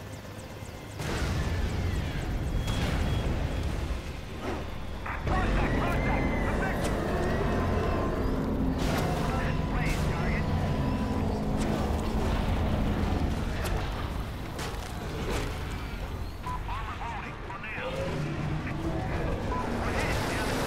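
Explosions boom and crash.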